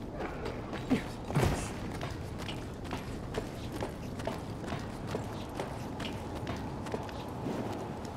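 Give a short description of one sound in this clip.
Hands and feet clank on the rungs of a metal ladder during a climb.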